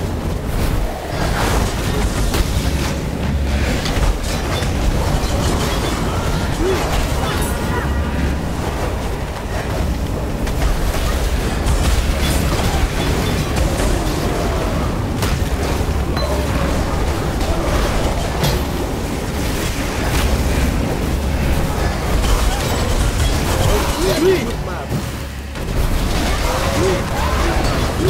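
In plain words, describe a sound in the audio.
Spell blasts and explosions crackle and boom without pause.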